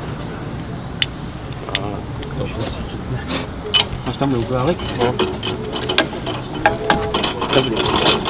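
A metal tool clicks and taps against an engine.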